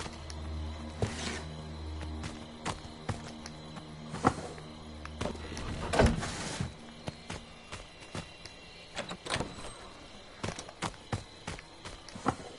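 Footsteps thud and creak on a wooden floor.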